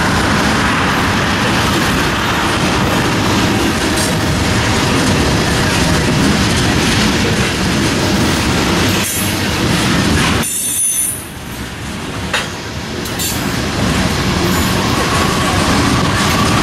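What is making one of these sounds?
A freight train of tank cars rolls past, its steel wheels rumbling on the rails.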